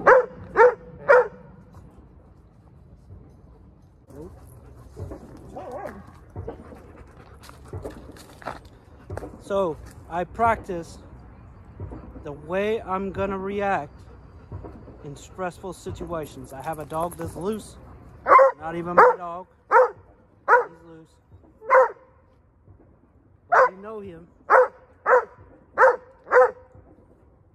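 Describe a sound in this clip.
Dogs bark loudly and sharply nearby.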